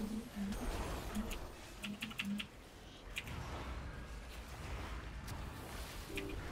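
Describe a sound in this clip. Magic spells whoosh and chime in a game battle.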